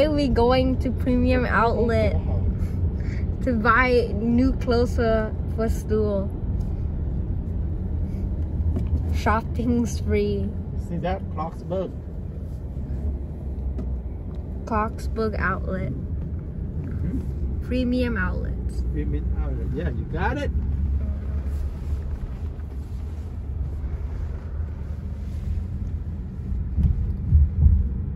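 A car's tyres and engine rumble steadily from inside the car as it drives.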